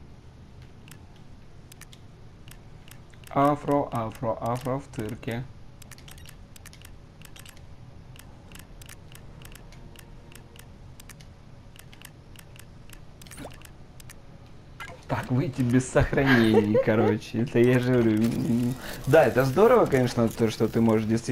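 Soft menu clicks tick quickly and repeatedly.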